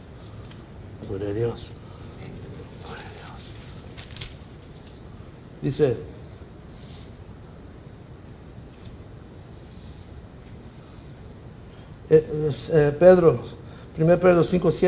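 A middle-aged man speaks slowly into a microphone, with long pauses.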